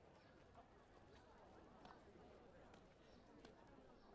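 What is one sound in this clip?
Footsteps scuff slowly on stone paving.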